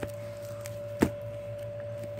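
An album is set down on a surface with a soft thud.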